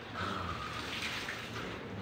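Water splashes as a wet cloth is wrung out.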